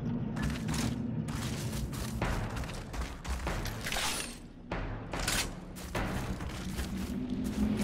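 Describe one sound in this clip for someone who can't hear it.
Footsteps crunch on dirt.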